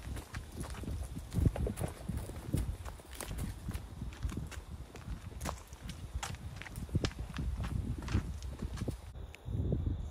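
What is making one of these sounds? Boots run on a hard path.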